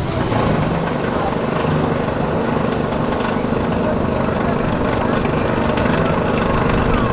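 A roller coaster train rumbles and clatters along its track.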